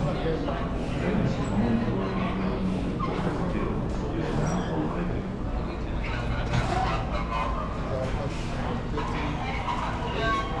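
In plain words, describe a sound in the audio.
A crowd murmurs in the distance in a large echoing hall.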